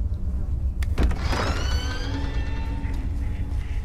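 A door handle turns and a door creaks open.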